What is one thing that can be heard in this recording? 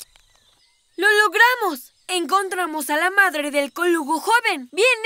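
A young boy speaks with animation, close by.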